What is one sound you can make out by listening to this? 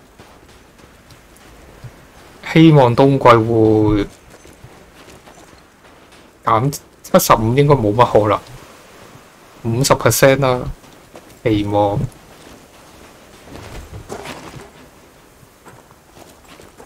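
Footsteps crunch through snow at a running pace.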